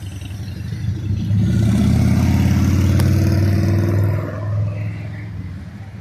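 A motorcycle engine rumbles loudly as it passes close by.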